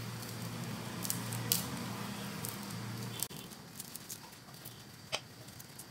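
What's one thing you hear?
A knife peels the skin off a garlic clove with soft scraping.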